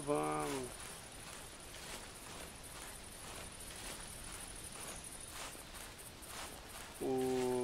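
Footsteps crunch slowly through leafy undergrowth.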